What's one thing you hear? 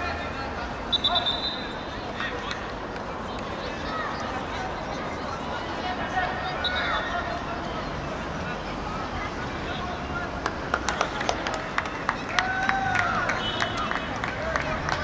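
A referee's whistle blows short sharp blasts.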